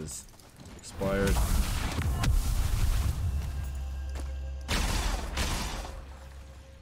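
A magical blast booms and crackles.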